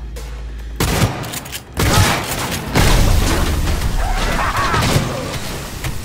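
A rifle fires loud bursts of shots at close range.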